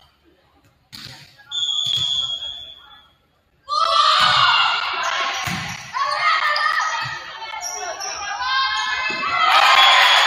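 A volleyball is struck with sharp thumps in a large echoing hall.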